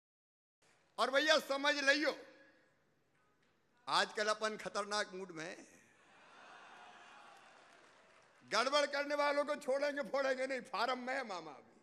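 A middle-aged man speaks forcefully into a microphone over a loudspeaker.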